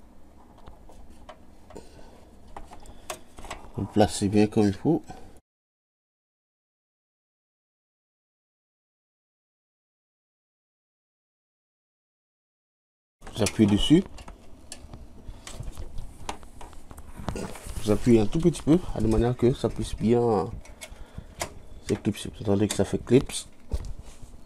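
Plastic cable connectors click and rustle as hands handle them.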